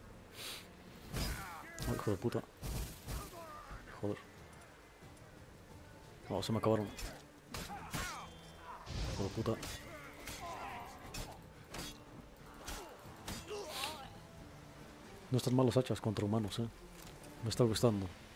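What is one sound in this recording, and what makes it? Swords clash and strike.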